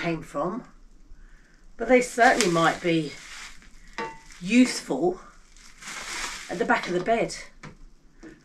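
Plastic wrapping rustles in a woman's hands.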